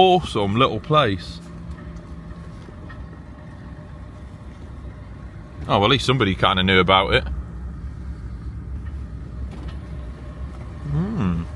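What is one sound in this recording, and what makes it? A vehicle engine hums low and steady from inside the cab.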